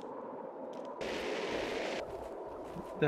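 A jetpack fires with a loud rushing hiss.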